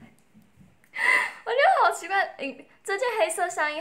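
A young woman laughs loudly and giggles close by.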